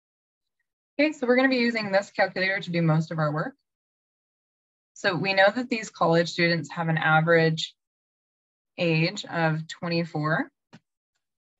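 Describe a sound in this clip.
A woman explains calmly over an online call.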